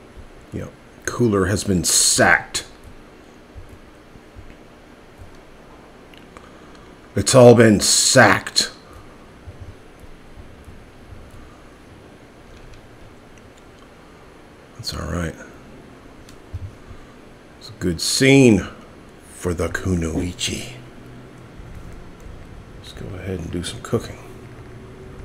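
A middle-aged man talks casually into a microphone in short bursts.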